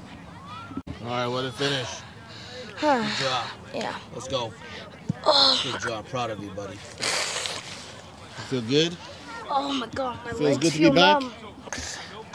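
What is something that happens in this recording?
A boy talks and laughs close by.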